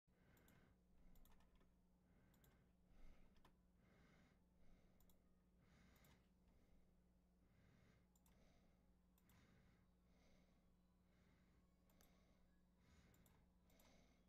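An acoustic guitar is strummed and picked steadily, close by.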